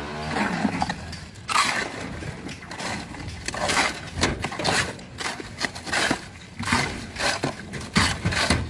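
Shovels scrape and crunch through wet gravel and cement.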